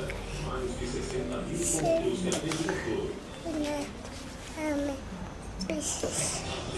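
A young child talks and squeals playfully up close.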